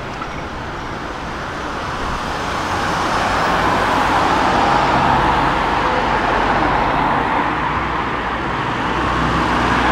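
Cars drive past on a road outdoors.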